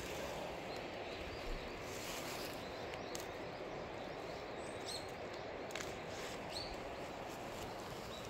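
Dry leaves and twigs rustle close by as a hand brushes through them.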